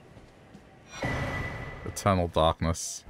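A magical whooshing chime rings out as an item is picked up.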